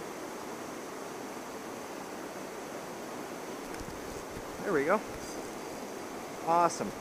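A swollen river rushes steadily over a low weir.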